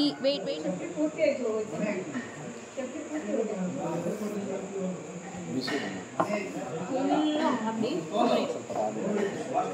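A man and a woman talk at a table nearby.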